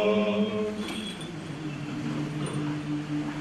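A man sings a lower chant that continues as the first chanting ends.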